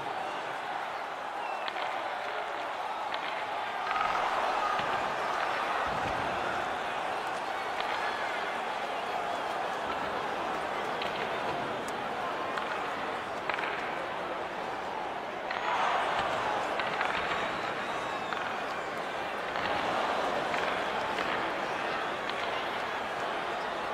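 A large crowd roars steadily in an echoing arena, swelling now and then.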